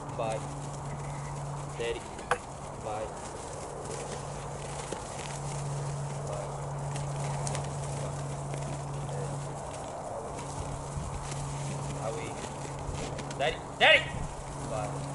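A man calls out commands to a dog from a short distance.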